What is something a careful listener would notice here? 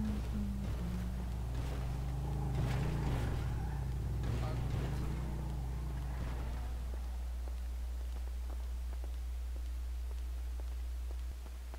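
Heels click on pavement at a walking pace.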